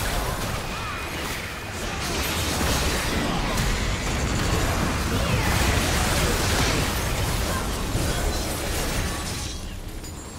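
Magic blasts and hits thud and zap rapidly.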